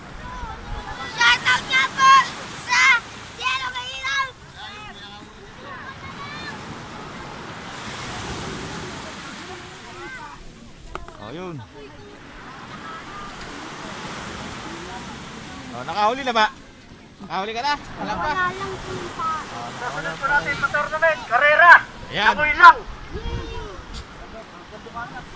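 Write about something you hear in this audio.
A crowd of people shout and call out outdoors.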